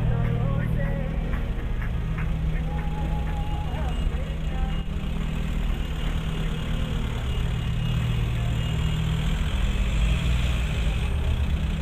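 Cars drive past on a city street with a steady low rumble.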